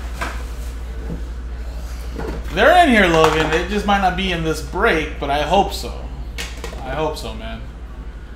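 A metal tin lid clicks open and shut.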